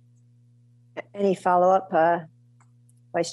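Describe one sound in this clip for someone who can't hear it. A woman speaks with a rising, questioning tone over an online call.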